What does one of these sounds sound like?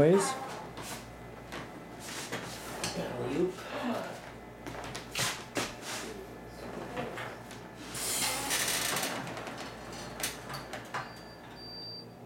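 A patient lift's chains and frame rattle and clank.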